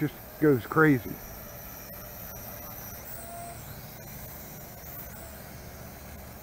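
A small toy drone whirs as it flies low nearby.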